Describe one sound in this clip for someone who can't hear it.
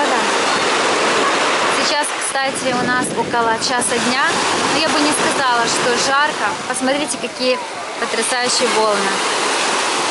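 Children and adults shout and laugh in the water nearby.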